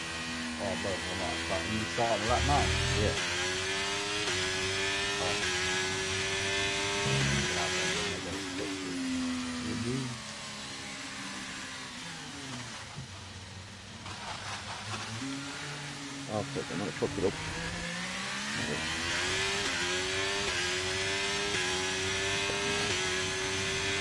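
A racing car engine roars and whines as it shifts up and down through the gears.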